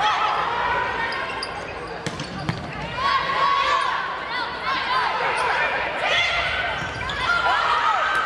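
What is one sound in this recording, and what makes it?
Players' shoes squeak sharply on the court floor.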